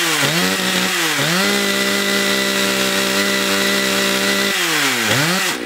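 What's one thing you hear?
A two-stroke chainsaw idles.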